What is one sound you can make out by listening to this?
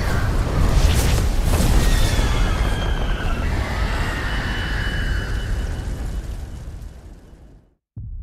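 Flames roar in a deep, rumbling blaze that fades away.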